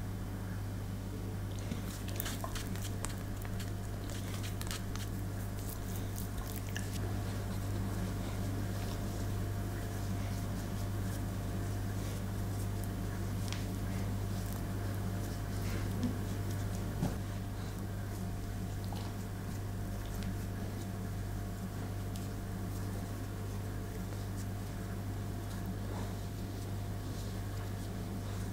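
Hands rub softly over a dog's fur.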